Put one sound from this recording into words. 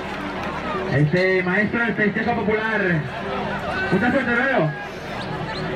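Men in a crowd shout and call out loudly.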